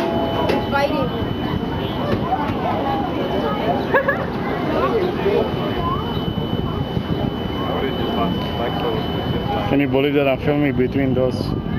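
Water splashes nearby.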